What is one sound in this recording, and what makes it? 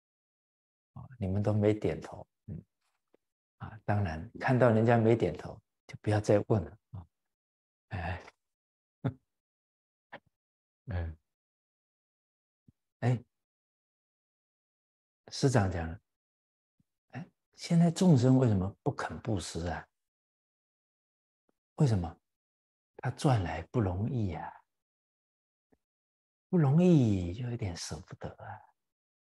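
A middle-aged man speaks calmly and warmly into a close microphone, with pauses.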